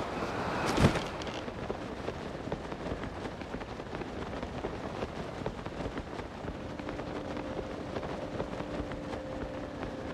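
Wind streams steadily past during a glide.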